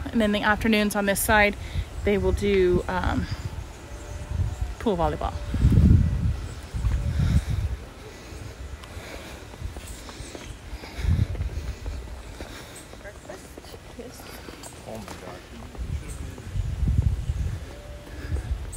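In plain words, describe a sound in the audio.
Wind gusts outdoors, buffeting in bursts.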